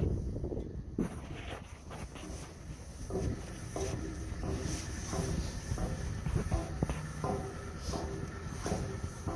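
Footsteps clang on metal stairs.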